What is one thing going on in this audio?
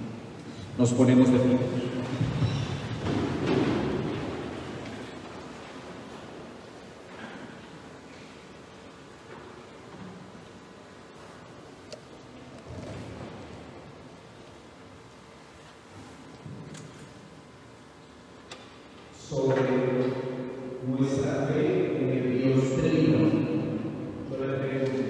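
A man speaks clearly through a microphone in a large echoing room.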